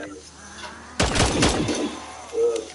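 Gunfire rattles in a quick burst.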